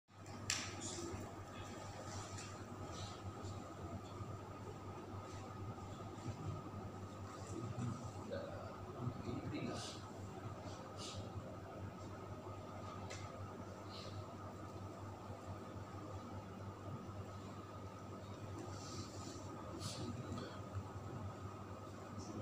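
Air conditioners hum steadily.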